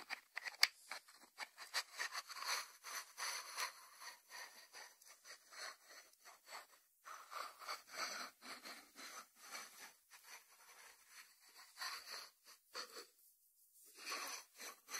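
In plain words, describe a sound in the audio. Fingertips rub over a ceramic lid.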